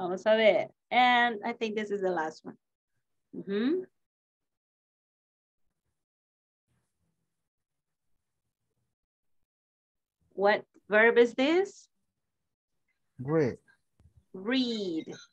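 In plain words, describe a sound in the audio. A woman speaks calmly over an online call, pausing between phrases.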